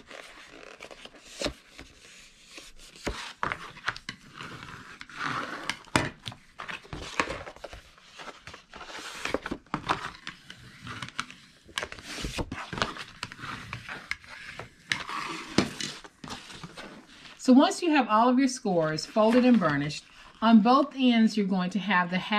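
Paper rustles and crinkles as it is folded.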